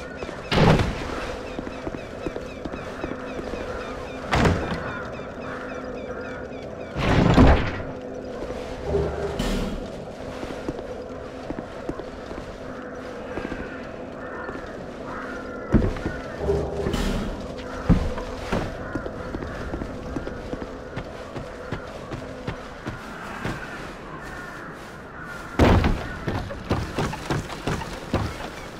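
Footsteps tread on a stone floor.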